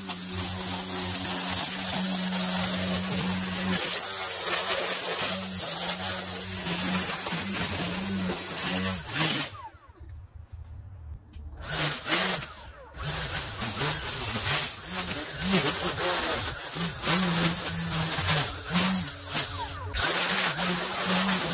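A gas string trimmer engine buzzes steadily, revving up and down.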